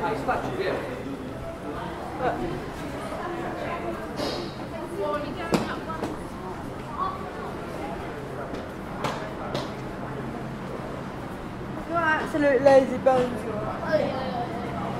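Adults chatter nearby.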